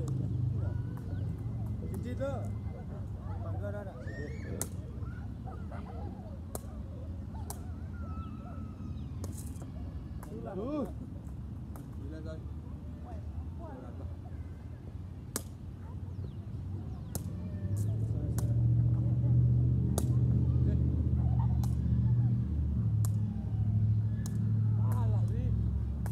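A volleyball is hit with sharp slaps.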